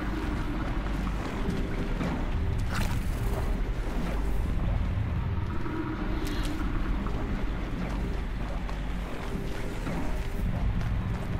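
Footsteps run over gritty ground.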